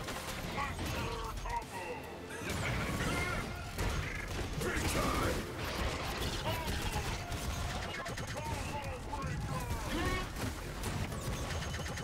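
Energy blasts whoosh and burst.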